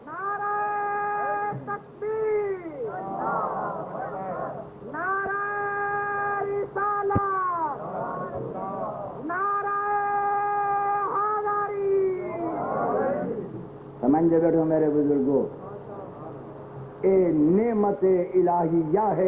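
An elderly man chants in long, drawn-out tones through a microphone.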